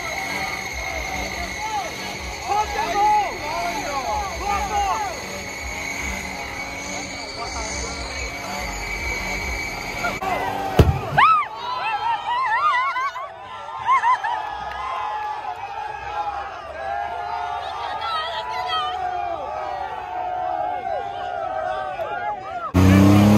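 A truck engine revs loudly.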